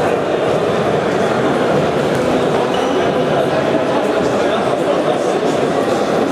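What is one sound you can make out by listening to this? A ball bounces on a hard floor.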